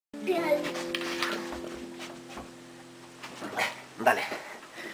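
A guitar chord is strummed and rings out slowly.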